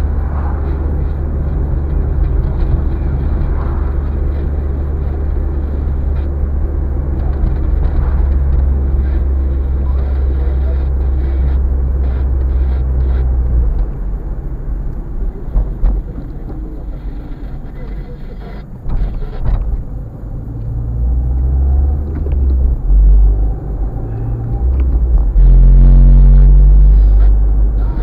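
Tyres rumble on a rough road surface.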